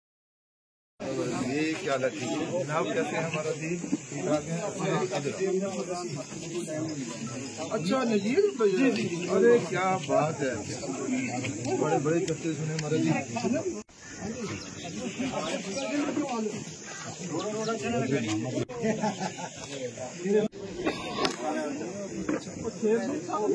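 Several men talk and greet one another over each other outdoors.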